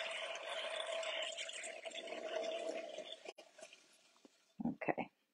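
A pottery wheel whirs steadily and then slows to a stop.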